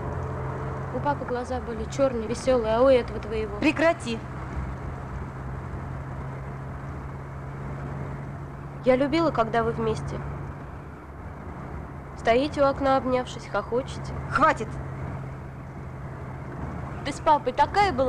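A teenage girl speaks close by, in short phrases.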